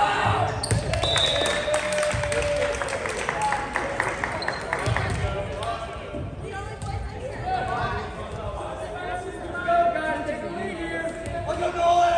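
Sneakers squeak on a hardwood floor in a large echoing hall.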